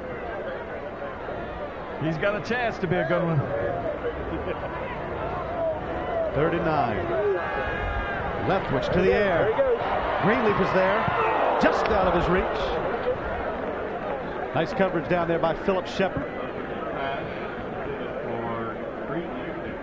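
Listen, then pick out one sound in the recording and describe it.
A large stadium crowd cheers, swelling to a roar and then easing off.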